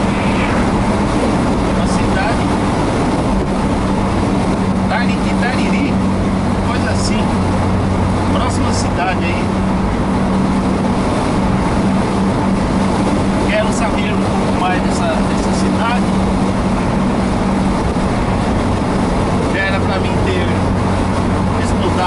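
Tyres roar on asphalt.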